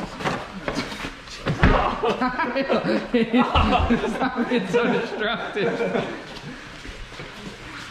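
A second young man laughs and talks.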